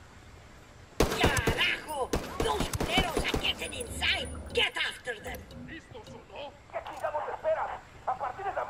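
Rapid gunshots fire in quick bursts close by.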